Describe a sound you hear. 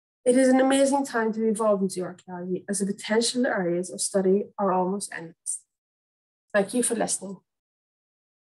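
A young woman speaks calmly through an online call microphone.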